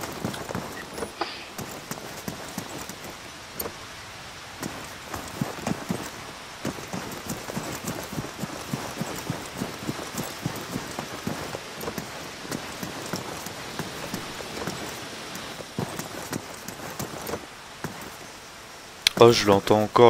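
Footsteps crunch and tap steadily on hard ground.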